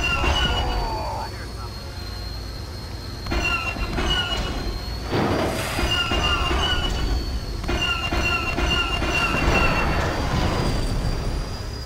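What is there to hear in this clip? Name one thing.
Blasts boom nearby.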